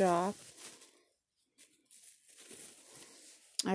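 Bubble wrap crinkles softly under a hand.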